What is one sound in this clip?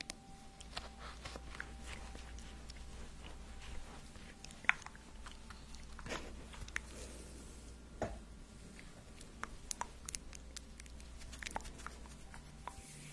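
A young woman whispers softly and closely into a microphone.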